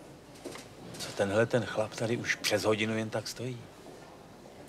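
An elderly man speaks loudly and sternly up close.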